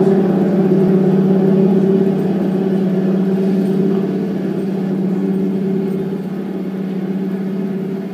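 Electronic music drones steadily through loudspeakers.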